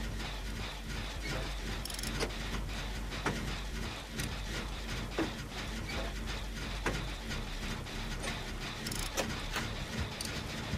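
Metal parts clank and rattle as a machine is repaired by hand.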